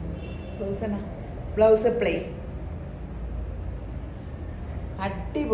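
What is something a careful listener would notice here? A woman speaks close by, cheerfully and with animation.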